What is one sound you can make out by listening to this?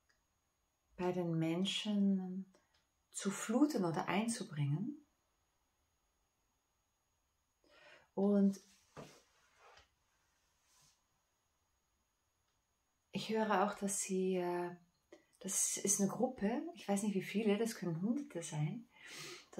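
A middle-aged woman speaks calmly and close to a microphone, with pauses.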